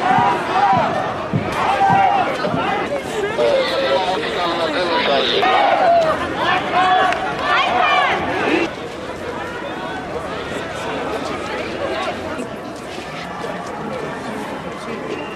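A large crowd murmurs outdoors.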